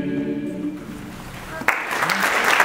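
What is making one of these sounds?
A choir sings a sustained final chord in an echoing hall.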